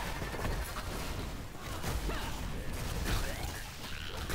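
Magic spells whoosh and crackle as game characters fight.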